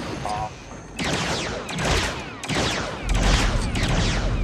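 Bolts hit targets with sparking crackles.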